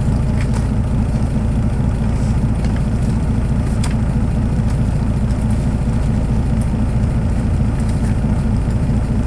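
A car engine idles with a steady, low rumble, heard from inside the car.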